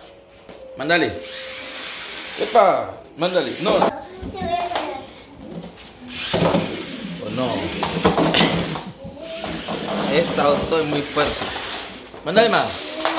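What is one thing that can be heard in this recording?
A toy car's motor whirs as its wheels roll across the floor.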